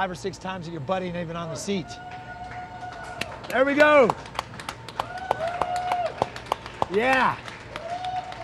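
A group of young people cheer and shout nearby.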